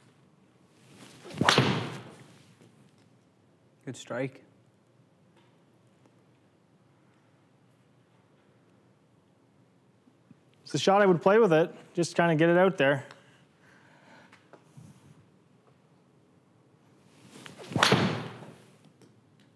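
A golf club strikes a ball with a sharp whoosh and crack, echoing in a small room.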